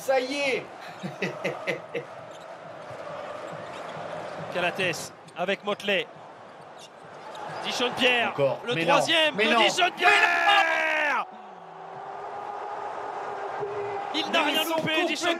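A large crowd cheers and chants in a big echoing arena.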